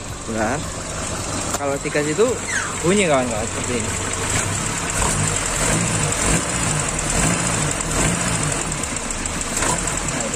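A car engine idles with a steady, low hum.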